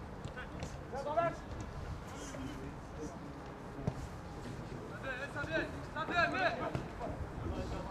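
Young men shout from a distance across an open field.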